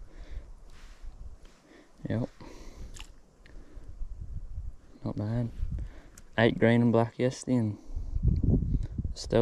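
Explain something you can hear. Water splashes as a fish is released.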